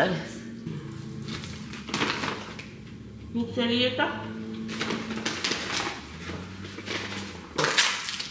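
Paper bags rustle and crinkle.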